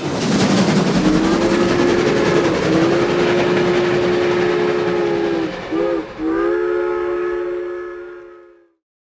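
A steam train whistle blows long and steady, then fades.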